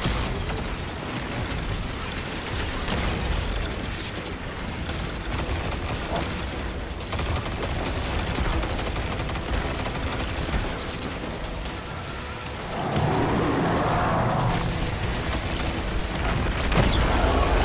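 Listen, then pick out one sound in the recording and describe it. Rapid gunfire rattles and booms in a video game.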